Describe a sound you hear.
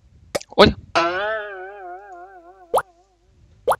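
A wobbling, falling tune plays.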